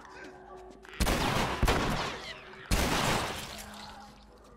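A shotgun fires two loud blasts that ring out and fade.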